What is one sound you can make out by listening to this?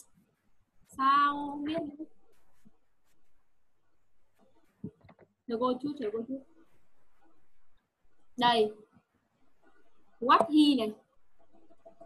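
A young woman speaks in short phrases over an online call, like a teacher explaining.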